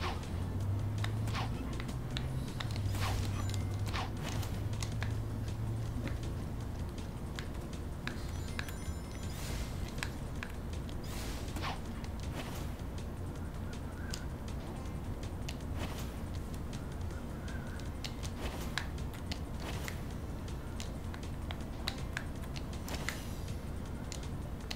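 Upbeat game music plays with bright chimes and quick whooshes.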